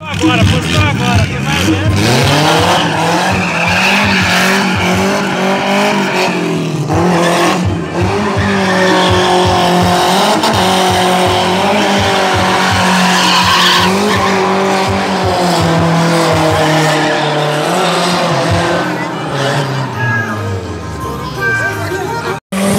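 A compact rear-wheel-drive car engine revs hard while drifting.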